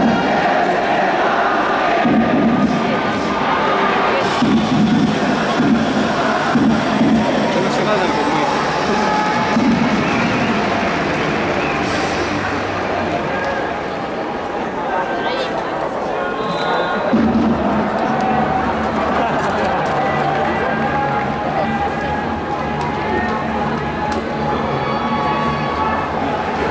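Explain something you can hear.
A crowd murmurs and chatters in a large, echoing stadium.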